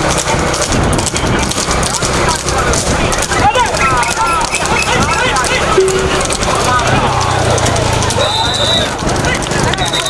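Cart wheels rattle along the road.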